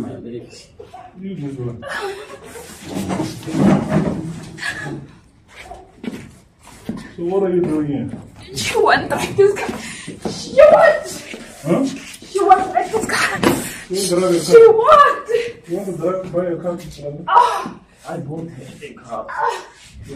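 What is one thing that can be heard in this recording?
A woman cries out and wails loudly nearby.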